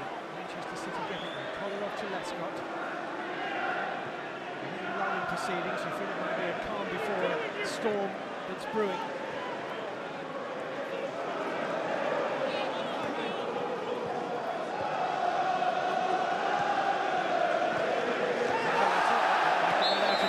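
A large stadium crowd chants and sings loudly, swelling toward the end.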